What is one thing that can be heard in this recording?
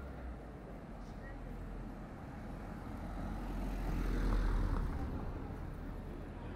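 A car drives slowly past on a paved street.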